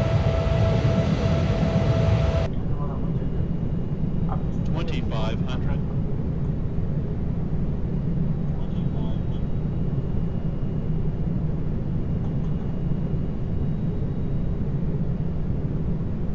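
Jet engines drone in a steady low rumble.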